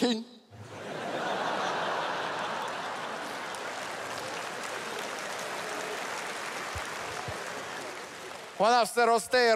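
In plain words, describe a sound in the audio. An audience laughs and applauds in a large hall.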